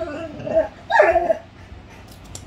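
A dog grumbles and whines while playing.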